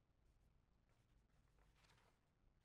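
A page of sheet music rustles as it is turned.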